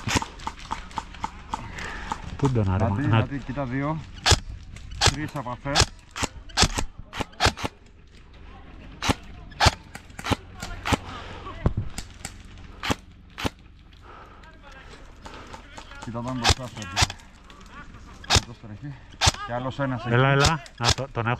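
A rifle fires sharp single shots, one after another, outdoors.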